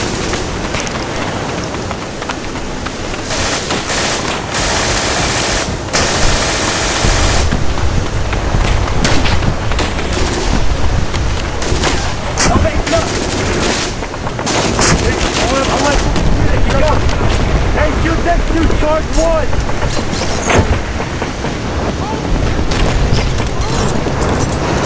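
Waves wash against a landing boat's hull.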